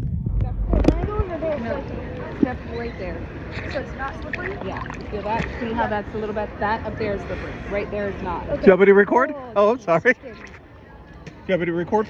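Water laps and splashes close by at the surface.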